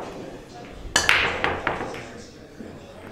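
Pool balls crack apart sharply and clatter across a table.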